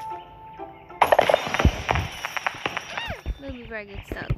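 A large chest bursts open with a bright sparkling chime.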